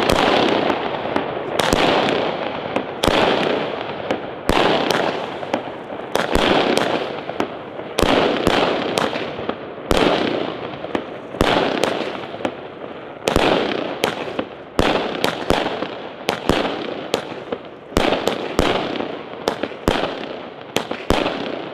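Fireworks crackle and fizz after each burst.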